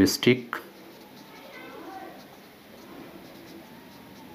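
A marker squeaks faintly on a whiteboard.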